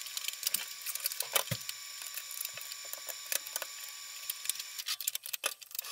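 A tray scrapes and knocks on a glass counter.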